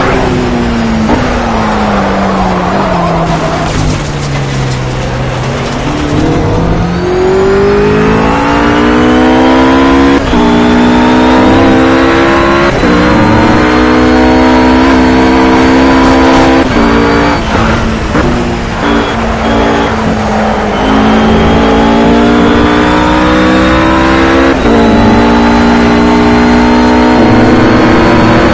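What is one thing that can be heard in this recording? A GT3 race car engine revs at full throttle, climbing through the gears with sharp upshifts.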